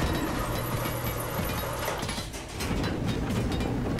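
A pickaxe strikes metal with sharp clanks.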